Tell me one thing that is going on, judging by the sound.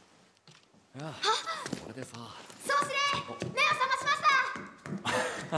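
A young woman calls out excitedly.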